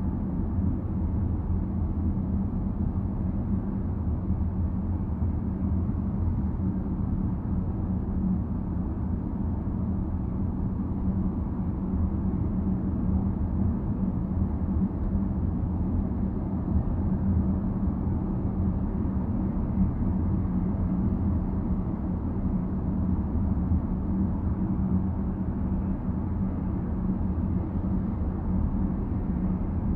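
Tyres roll on the road with a low, steady rumble.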